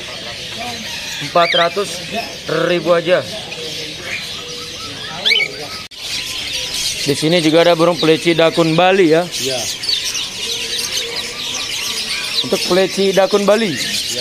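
Many small birds chirp and twitter busily.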